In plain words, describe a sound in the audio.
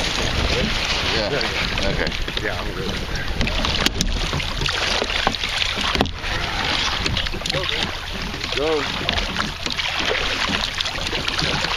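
Wind rumbles across the open water.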